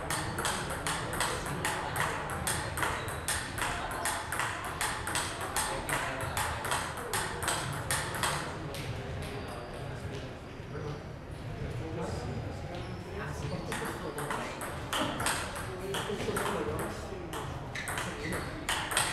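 A table tennis ball clicks rapidly back and forth off paddles and the table in a large echoing hall.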